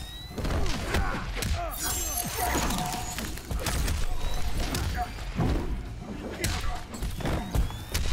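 Heavy punches and kicks land with hard thuds in quick succession.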